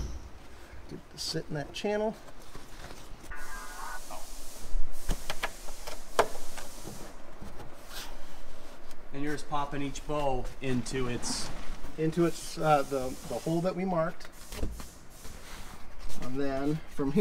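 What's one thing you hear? A man talks calmly up close.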